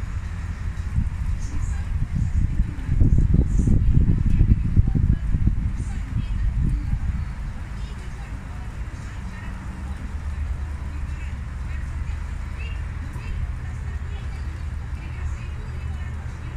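Traffic rumbles steadily on a nearby road.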